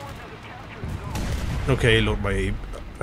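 A heavy blast booms nearby.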